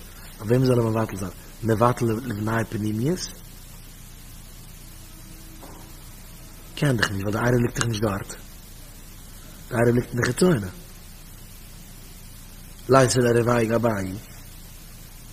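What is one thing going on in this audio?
A man speaks calmly into a microphone in short phrases with pauses.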